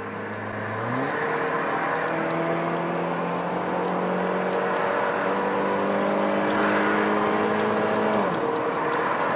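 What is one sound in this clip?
A car engine hums and rises in pitch as the car speeds up.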